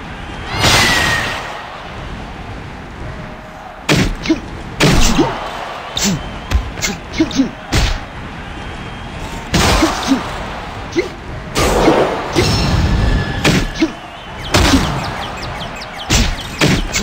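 Punches land with heavy thuds and smacks.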